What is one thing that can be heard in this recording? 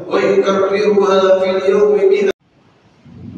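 An adult man speaks loudly through a loudspeaker in a large echoing hall.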